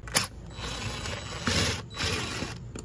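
A cordless drill whirs, driving a screw.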